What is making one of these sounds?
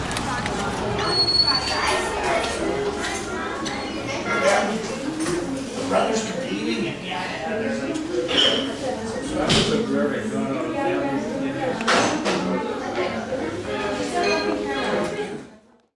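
Several men and women talk at once in a busy, lively room.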